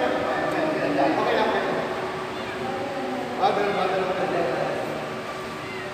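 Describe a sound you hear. A woman speaks agitatedly among the men.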